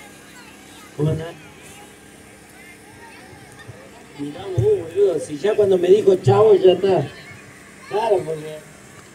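A crowd of onlookers shouts and cheers outdoors.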